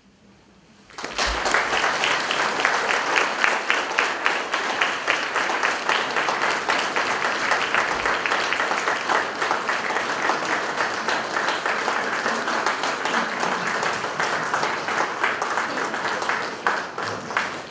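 An audience claps and applauds steadily.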